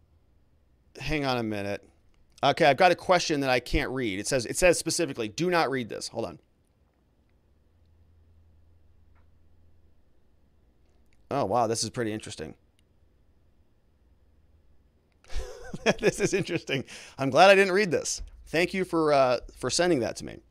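A man speaks calmly and clearly into a close microphone, with pauses.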